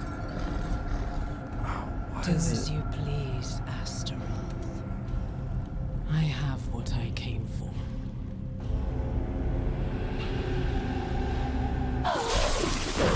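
Low, eerie music drones and swells.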